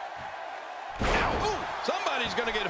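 A body slams down hard onto a wrestling ring.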